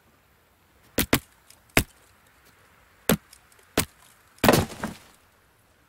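A stone hammer knocks sharply against a tree trunk several times.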